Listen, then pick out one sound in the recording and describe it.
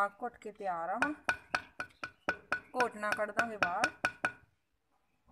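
A wooden pestle thumps and grinds inside a heavy pot.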